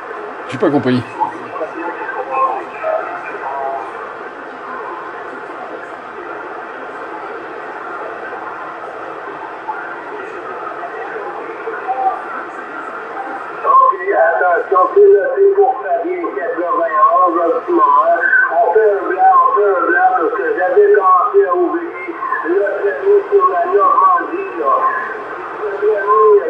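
Radio static hisses steadily from a receiver's loudspeaker.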